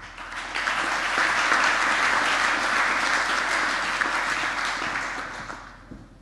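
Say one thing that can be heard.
A large audience applauds in a big echoing hall, the clapping swelling and then fading.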